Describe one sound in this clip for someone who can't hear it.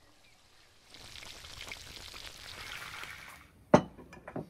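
Fish sizzles and crackles in hot oil.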